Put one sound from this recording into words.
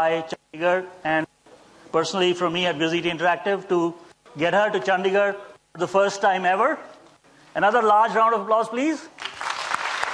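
A synthetic female voice speaks calmly through loudspeakers in a large hall.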